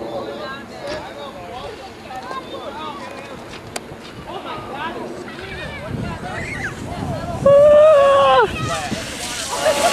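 A sled scrapes down icy snow.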